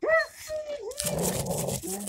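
A dog whines in high, bending cries.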